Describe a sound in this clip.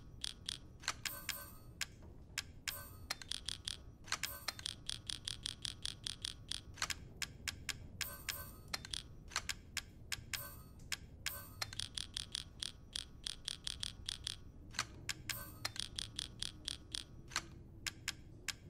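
Short interface clicks and ticks sound in quick bursts as a menu cursor moves.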